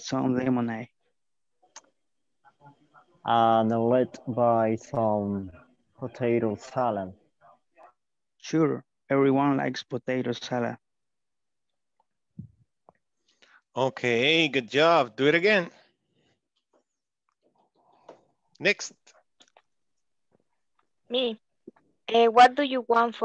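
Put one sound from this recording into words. A young man speaks calmly over an online call, with pauses.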